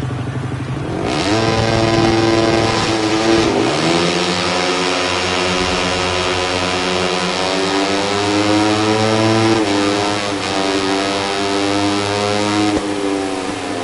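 A motorcycle engine roars as it speeds up, rising in pitch through several gear changes.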